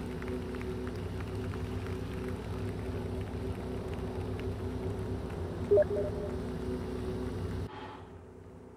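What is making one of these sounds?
A car engine hums steadily at idle.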